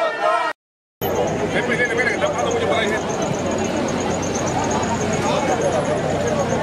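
A crowd murmurs and calls out on a street.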